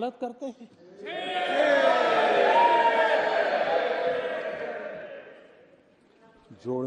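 A crowd of men shouts and cheers loudly, then fades.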